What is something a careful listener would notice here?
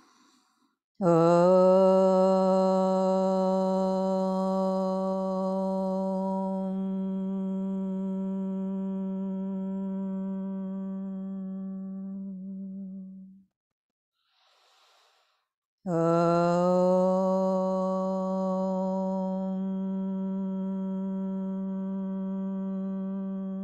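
A woman sings a long, steady held note close by.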